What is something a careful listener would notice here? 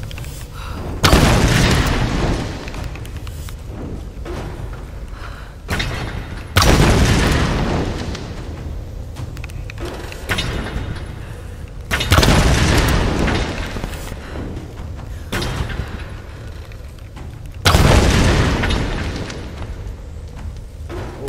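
Explosions boom loudly and rumble away.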